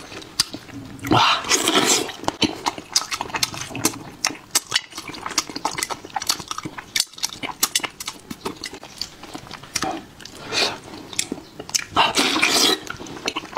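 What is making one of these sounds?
A man chews and slurps food loudly close to a microphone.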